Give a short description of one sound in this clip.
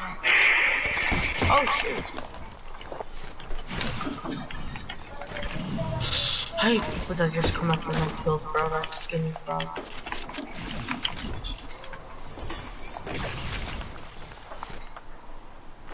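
Video game sound effects clatter, thud and whoosh.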